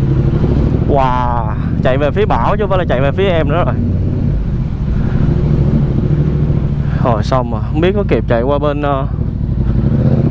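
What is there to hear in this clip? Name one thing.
A motorcycle engine revs up and down in quick bursts.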